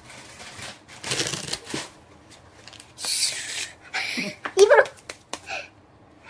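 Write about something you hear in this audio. Playing cards riffle and snap as they are shuffled by hand.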